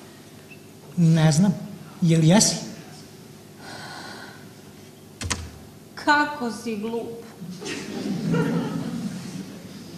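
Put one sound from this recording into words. A young woman speaks with feeling, heard from a distance in a large echoing hall.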